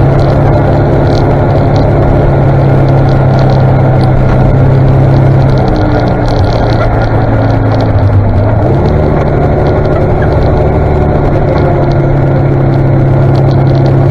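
A vehicle engine hums loudly and steadily close by, dipping and then rising in pitch.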